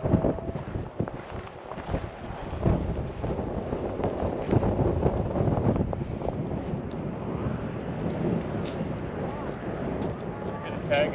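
Wind blusters across the microphone outdoors.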